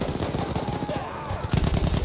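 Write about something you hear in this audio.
A rifle fires close by with sharp cracks.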